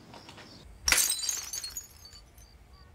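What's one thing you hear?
Coins clatter and scatter onto a hard floor.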